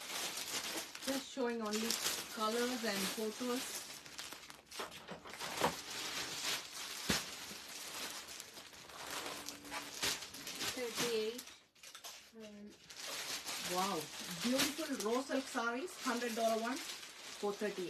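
Plastic packaging crinkles in a woman's hands.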